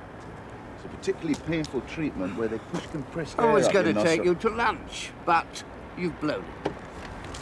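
A man talks with another man nearby.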